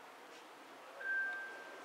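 An elevator chime sounds a short steady tone.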